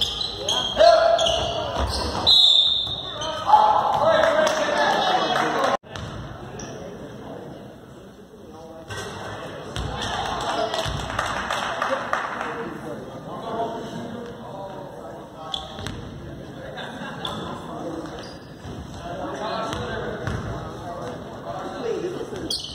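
Spectators chatter and call out nearby.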